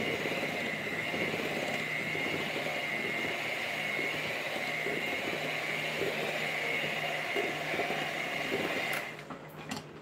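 An electric hand mixer whirs steadily in a bowl.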